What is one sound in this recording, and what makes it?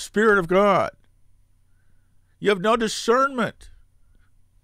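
An elderly man speaks calmly and close to a microphone, in short phrases.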